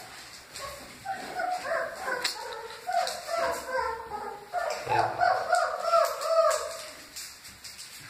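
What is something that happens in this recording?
Young puppies whimper and squeal close by.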